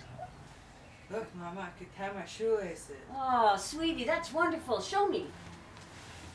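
An elderly woman speaks firmly, close by.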